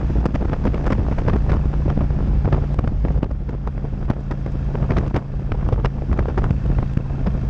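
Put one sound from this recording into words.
Wind buffets a microphone with rushing gusts.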